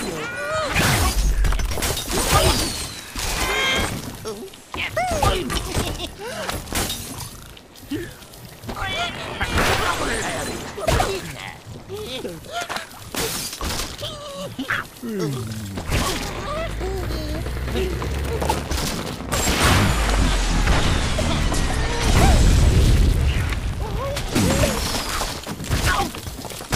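Wooden and glass blocks crash and shatter as a structure collapses.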